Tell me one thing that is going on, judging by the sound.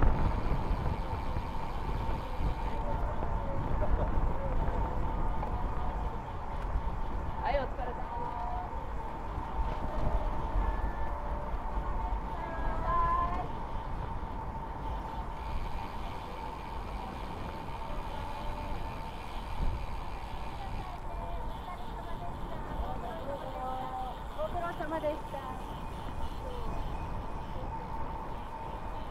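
Wind rumbles steadily over a moving motorcycle.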